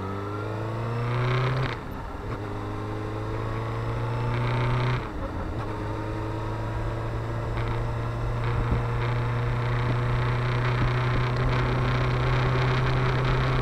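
An inline-four sport bike engine accelerates hard, shifting up through the gears.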